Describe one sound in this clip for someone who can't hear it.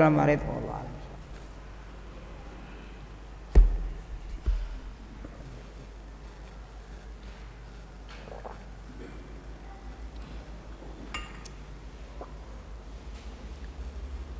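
An elderly man speaks slowly into a microphone.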